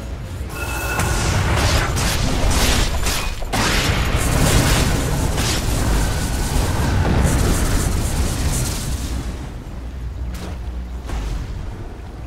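Spells crackle and blast during a fantasy battle game fight.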